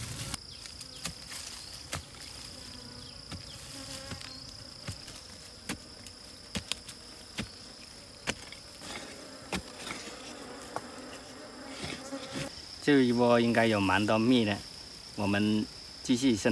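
A pick strikes and scrapes dry soil in short knocks.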